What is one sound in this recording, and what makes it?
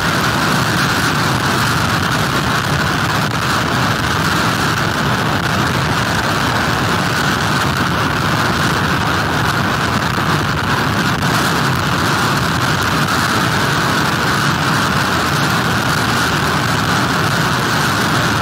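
Strong wind blows hard outdoors.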